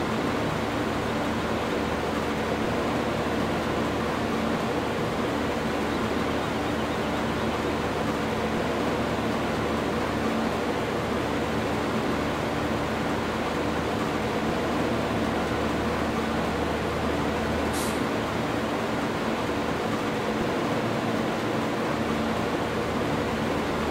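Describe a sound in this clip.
A combine harvester engine drones steadily.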